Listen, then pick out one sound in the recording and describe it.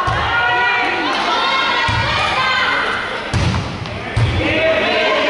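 A volleyball is struck with dull thumps.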